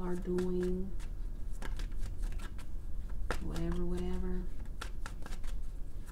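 Cards rustle and tap in a hand close by.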